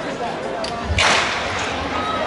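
A starting pistol fires once with a sharp crack.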